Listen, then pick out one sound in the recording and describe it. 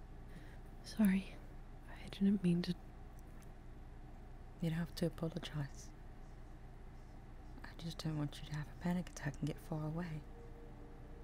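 A young woman speaks casually into a close microphone, in short bursts.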